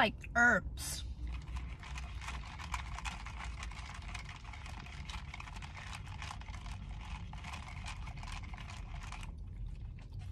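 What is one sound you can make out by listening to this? A young woman whispers softly close to the microphone.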